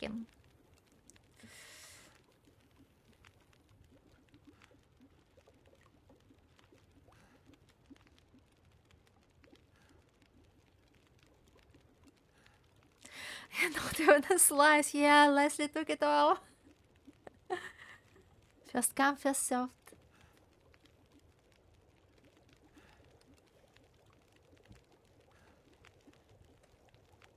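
A fire crackles softly inside a stove.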